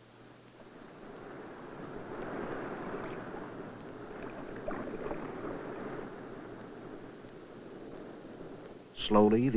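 Water splashes and churns at the surface.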